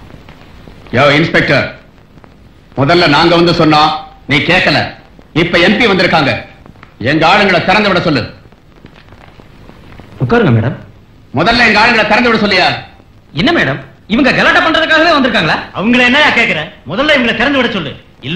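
A man speaks loudly and sternly.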